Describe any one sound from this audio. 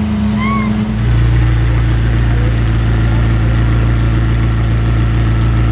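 A sports car engine rumbles deeply at idle.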